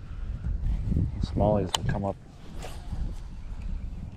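A fishing reel clicks as line pays out.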